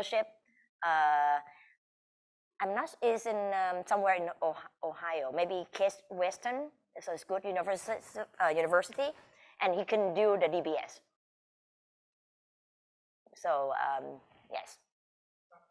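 A middle-aged woman speaks with feeling through an online call, in bursts with pauses.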